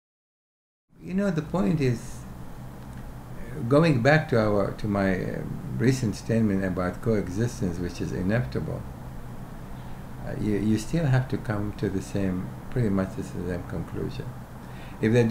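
An elderly man speaks calmly and thoughtfully into a close microphone.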